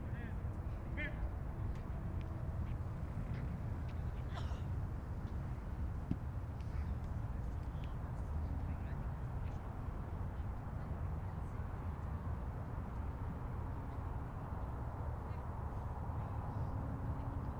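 A crowd of young people murmurs quietly outdoors.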